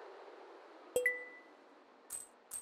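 A short game chime sounds.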